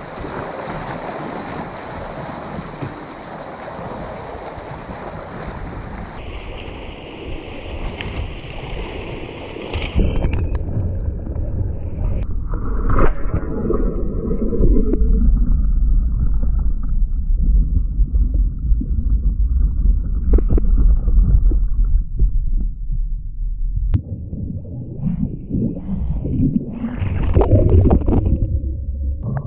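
Rushing rapids roar and churn loudly all around.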